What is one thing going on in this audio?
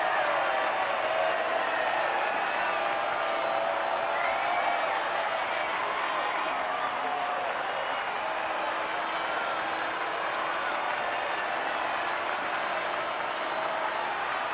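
A large crowd cheers and applauds in the distance.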